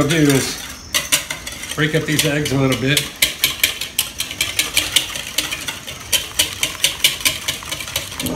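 A whisk beats eggs quickly against the side of a plastic bowl.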